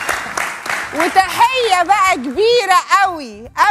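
A young woman laughs loudly and shrieks with delight.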